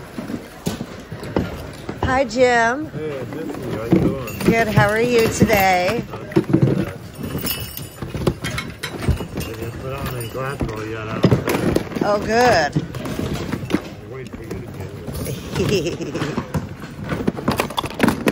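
Hands rummage through a pile of objects, with things rustling and clattering.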